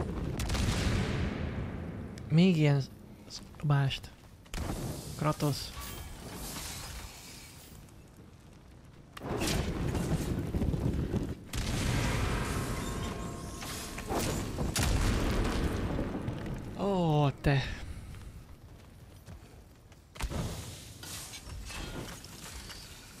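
A young man talks close to a microphone.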